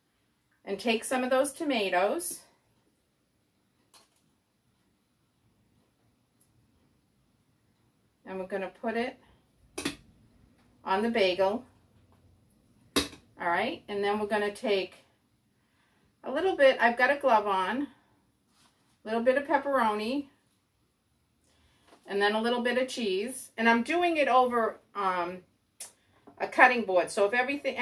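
A middle-aged woman talks calmly and clearly into a close microphone, in short bursts with pauses.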